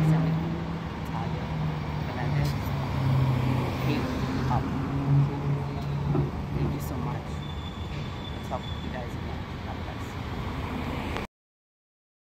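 A woman speaks with animation close to the microphone, outdoors.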